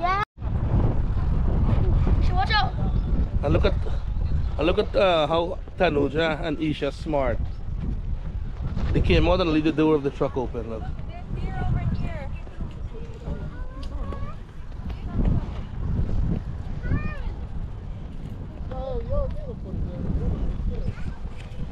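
Young children talk and call out with high voices close by.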